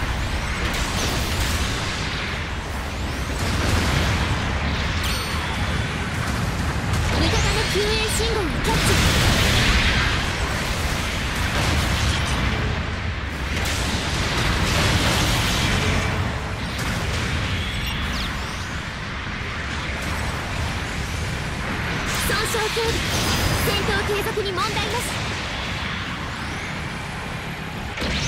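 Heavy mechanical thrusters roar steadily.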